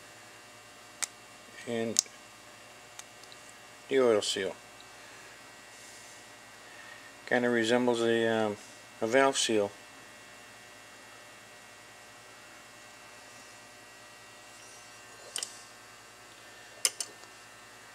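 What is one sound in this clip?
Small metal parts click against each other in a hand.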